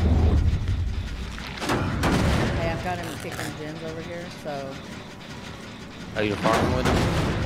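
A machine engine rattles and clanks nearby.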